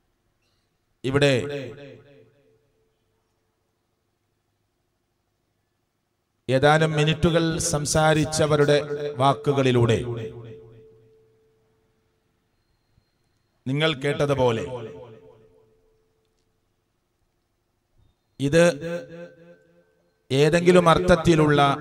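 A man speaks slowly and with feeling into a microphone, in bursts with long pauses, his voice ringing in a reverberant hall.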